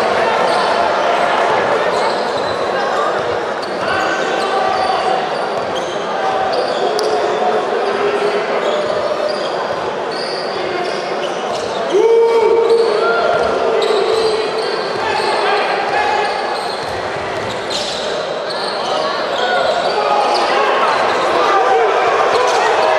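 A crowd cheers and chatters throughout a large echoing hall.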